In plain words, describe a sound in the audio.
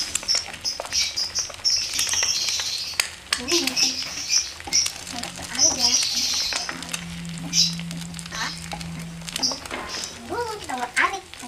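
A wooden spatula scrapes and taps against a frying pan.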